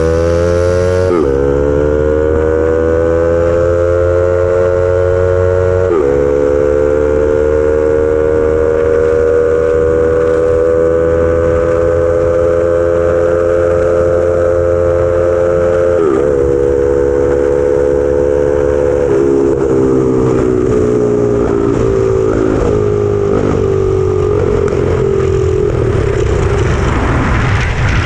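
A small engine roars loudly, rising in pitch and dropping sharply at each gear change.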